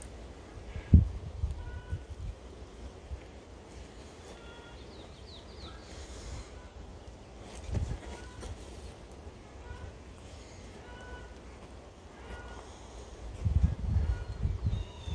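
Footsteps thump softly on dirt.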